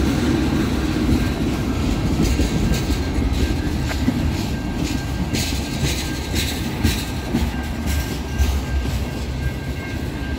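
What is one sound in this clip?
A freight train rumbles steadily past close by.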